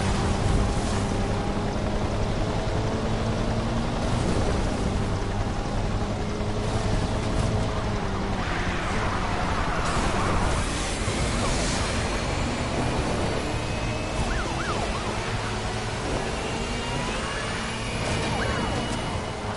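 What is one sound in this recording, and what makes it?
A racing car engine roars at high speed throughout.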